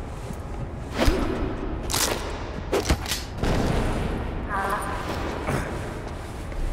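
A man struggles and is knocked down in a brief scuffle.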